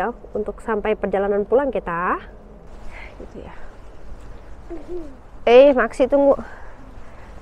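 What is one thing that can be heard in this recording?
A woman speaks with animation close by.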